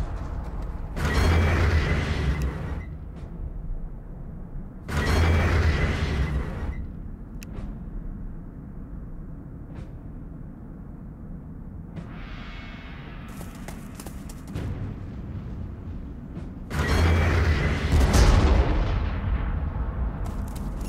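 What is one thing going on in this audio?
Video game battle sound effects burst out in short rounds.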